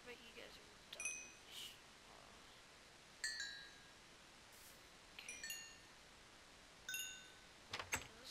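Short high plinks pop as items are picked up in a game.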